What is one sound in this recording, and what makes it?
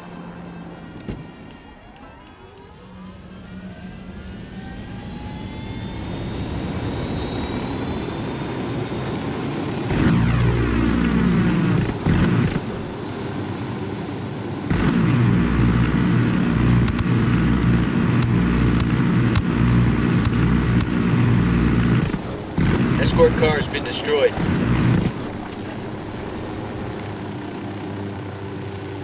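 A helicopter's rotor and engine drone steadily, growing louder at times.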